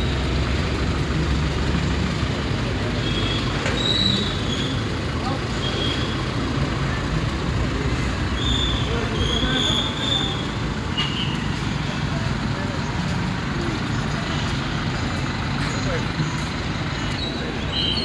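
Traffic hums along a road outdoors.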